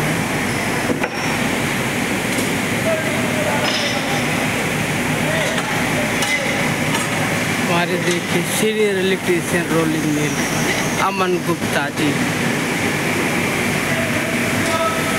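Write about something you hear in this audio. Machinery hums and rumbles steadily in a large echoing hall.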